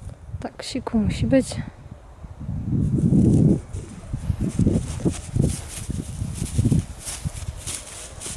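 A small dog's paws rustle through grass.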